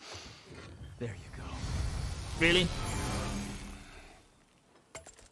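An axe whooshes and hums with a shimmering ring.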